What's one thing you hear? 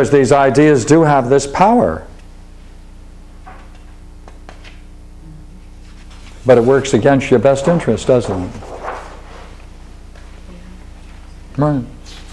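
An elderly man lectures calmly, close by, with pauses between phrases.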